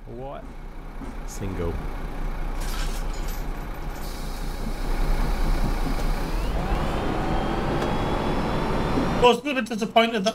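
A bus engine rumbles and rises in pitch as the bus pulls away.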